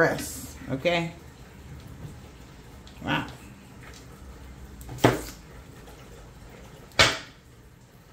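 Cards tap softly as they are laid on a table.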